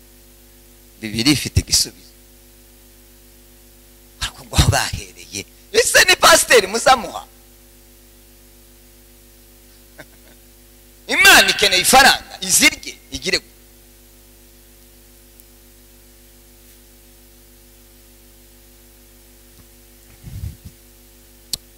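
A man speaks with animation into a microphone over loudspeakers, in bursts with pauses.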